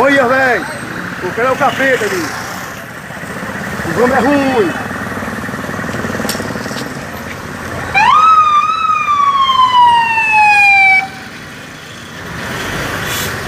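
A motorcycle engine runs steadily close by.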